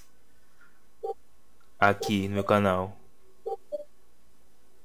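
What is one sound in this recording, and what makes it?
A short electronic blip sounds as a menu choice changes.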